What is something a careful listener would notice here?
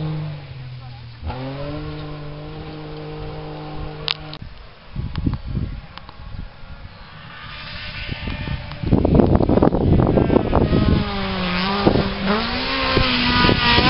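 A rally car engine revs hard and shifts gears as the car approaches, growing louder.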